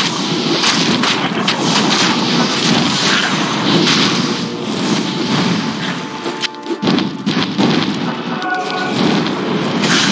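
Blades clash and bones clatter in a fight.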